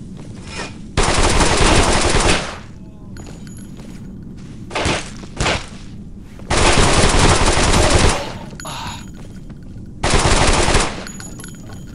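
A submachine gun fires rapid bursts that echo.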